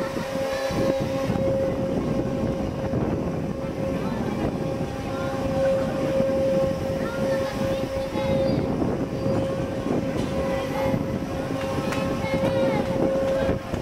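A rotating balloon ride rumbles as it turns.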